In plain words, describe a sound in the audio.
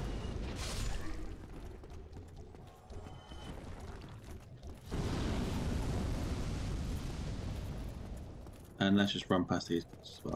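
Armored footsteps clank on a stone floor.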